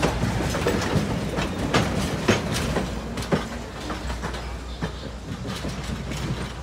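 A passenger train rolls slowly past, its wheels clicking and clunking on the rails.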